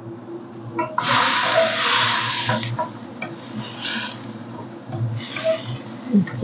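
Vegetables sizzle loudly in a hot pan.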